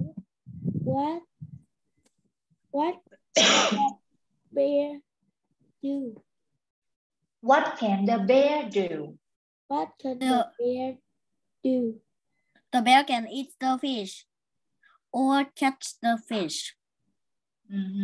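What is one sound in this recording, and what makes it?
A young child answers over an online call.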